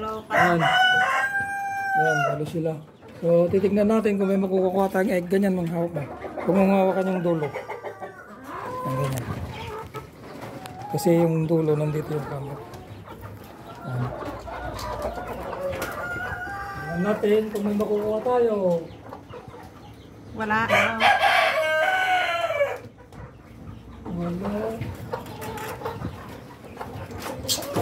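Hens cluck and cackle loudly close by.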